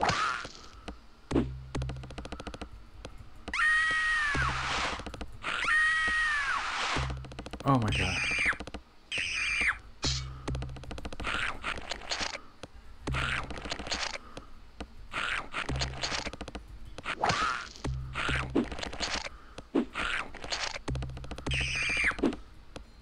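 Retro game music plays with a thumping beat.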